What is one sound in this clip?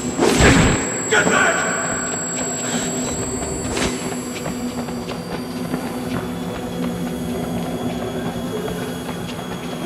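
Heavy footsteps run quickly on a hard floor.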